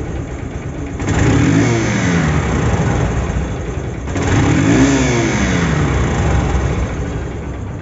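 A motorcycle engine revs up sharply twice and drops back.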